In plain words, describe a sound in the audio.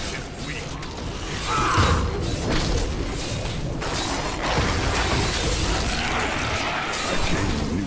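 Magic spells crackle and explode in rapid bursts.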